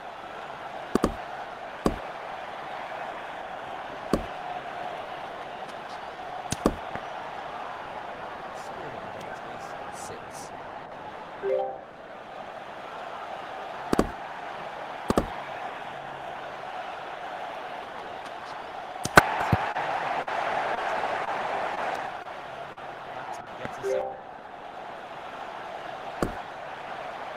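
A cricket bat strikes a ball with a sharp crack, again and again.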